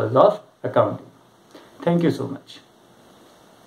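A young man speaks calmly and clearly close to a microphone.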